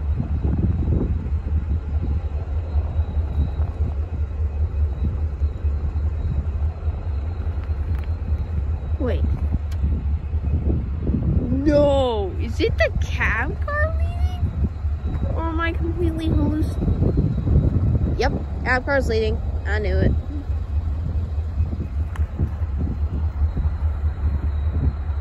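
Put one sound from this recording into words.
A train engine rumbles low in the distance.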